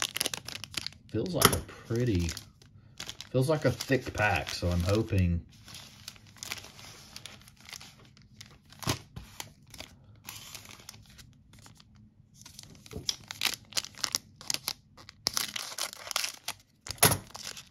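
A foil wrapper crinkles in a hand.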